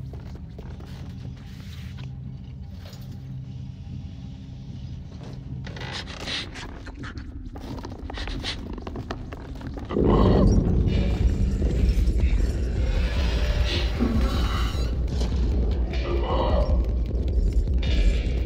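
Small footsteps patter on a creaking wooden floor.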